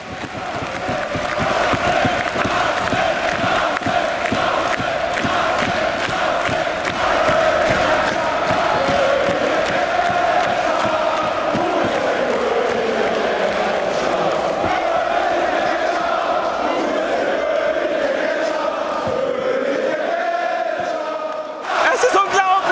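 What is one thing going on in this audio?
A large crowd chants loudly in unison in an echoing hall.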